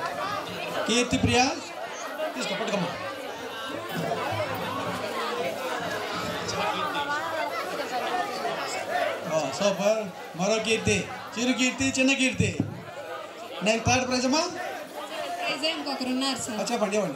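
A man speaks with animation through a loudspeaker microphone, echoing in a large space.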